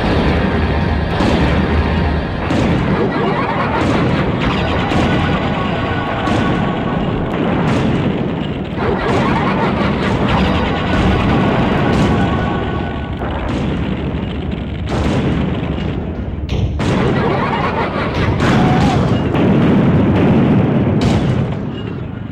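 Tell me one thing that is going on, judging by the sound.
Loud explosions boom and roar again and again.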